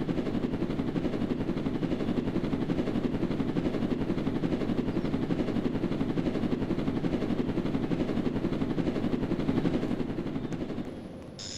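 A game vehicle's engine hums steadily.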